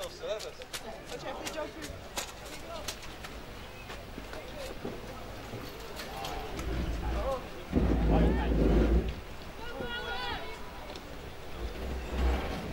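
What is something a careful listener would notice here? Young players shout and call to each other outdoors.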